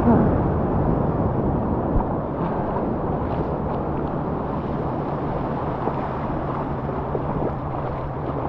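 Small waves wash up onto a sandy shore.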